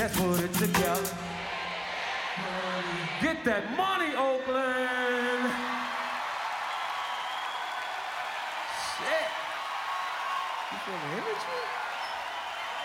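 A large crowd cheers and screams in a big echoing hall.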